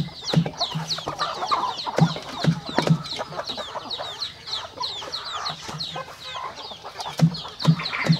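A chicken flaps its wings.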